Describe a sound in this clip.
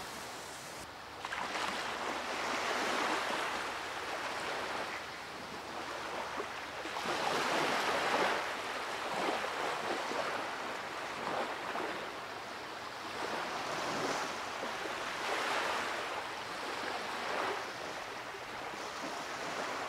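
Small waves wash onto a shore in steady surges.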